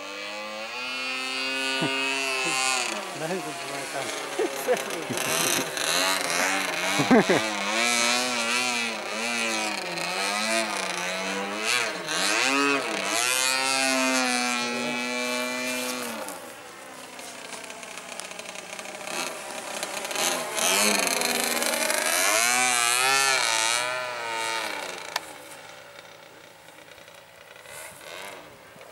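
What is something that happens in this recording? A model airplane engine whines overhead, rising and falling in pitch as the plane loops and dives.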